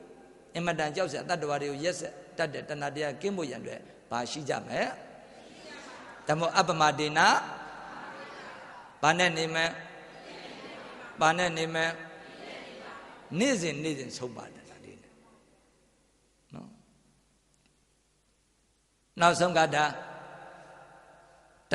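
A middle-aged man speaks into a microphone in bursts, with a melodic chanting tone.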